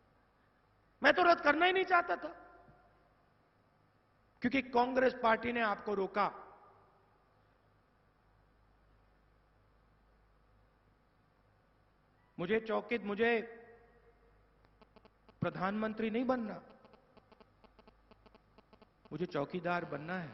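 A young man speaks with emphasis through a microphone and loudspeakers, in short bursts with pauses.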